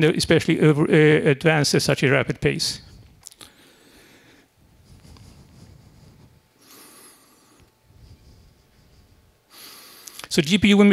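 An elderly man speaks calmly through a microphone in a large room.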